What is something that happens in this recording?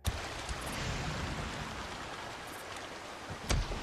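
Footsteps thud on wooden planks outdoors.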